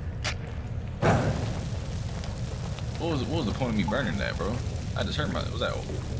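Flames burst up and crackle.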